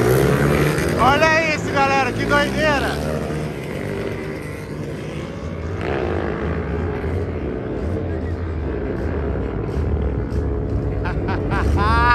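Motorcycles roar off down a track into the distance.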